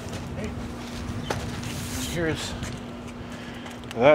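A cardboard box thuds down onto concrete.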